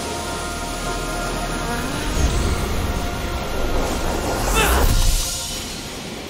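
Electricity crackles and sizzles loudly, building to a sharp burst.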